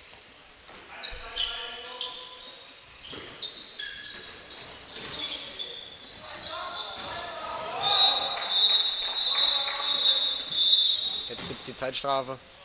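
Players shout to each other in an echoing hall.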